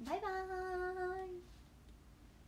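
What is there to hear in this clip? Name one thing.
A young woman calls out a long, drawn-out cheerful note close by.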